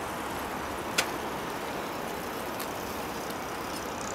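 Bicycles roll past on a paved path.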